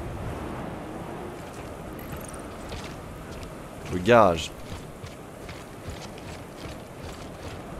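Heavy boots crunch through snow.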